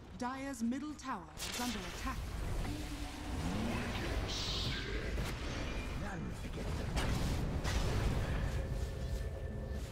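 Blasts of fire roar from a game creature.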